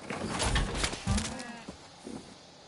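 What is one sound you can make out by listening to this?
A cow moos.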